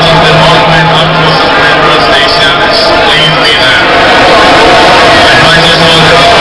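A large crowd cheers and shouts loudly all around.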